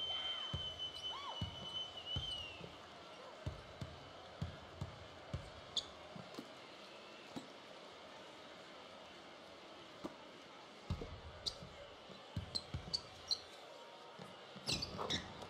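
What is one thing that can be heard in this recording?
A basketball bounces on a hardwood floor in steady dribbles.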